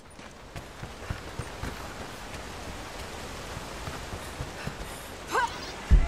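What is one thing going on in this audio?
Footsteps thud on wooden steps.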